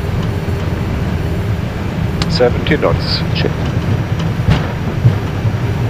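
Jet engines roar steadily with a deep, heavy rumble.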